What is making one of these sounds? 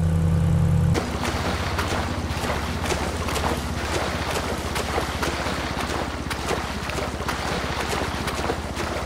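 A swimmer splashes through water with quick strokes.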